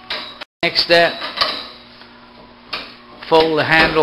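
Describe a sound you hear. A metal handle clicks and clanks as it is folded.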